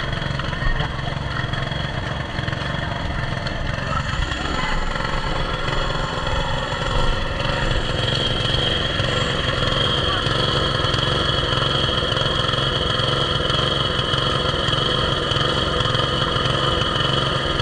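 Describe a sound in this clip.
A small petrol water pump engine runs steadily with a low drone.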